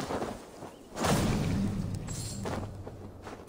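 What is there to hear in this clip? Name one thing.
A heavy thud sounds as a body drops to the ground.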